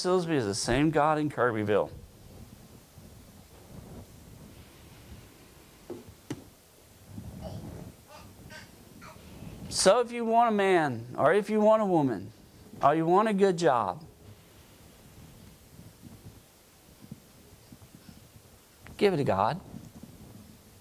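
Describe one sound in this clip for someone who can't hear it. A middle-aged man speaks through a microphone in bursts, with long pauses.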